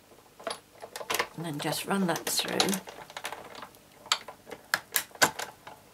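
A hand crank turns, rolling plates through a machine with a grinding whir.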